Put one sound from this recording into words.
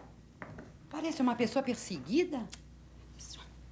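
A woman talks calmly.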